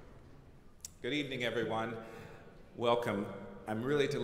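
A man speaks calmly into a microphone over loudspeakers in a large hall.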